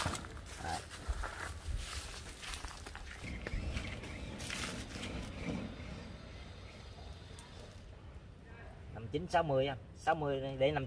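A plastic tape rustles as it is wrapped around a tree trunk.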